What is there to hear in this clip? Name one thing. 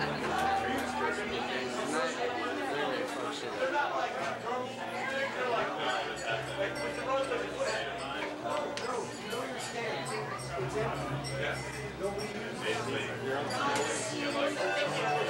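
A crowd of young men chatter and shout loudly nearby.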